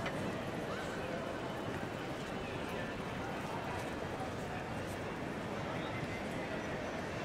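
A crowd murmurs in a large, echoing hall.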